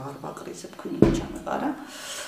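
A bowl thuds down on a board.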